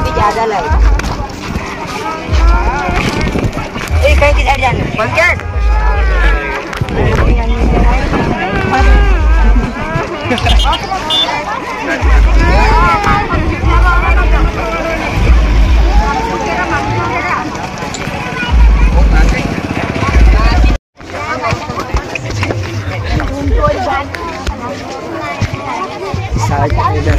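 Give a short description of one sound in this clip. A crowd of women and men talk loudly over one another close by.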